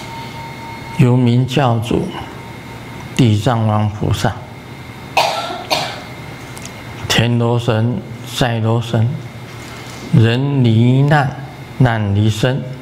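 An elderly man chants in a deep voice into a microphone, in short rising and falling phrases.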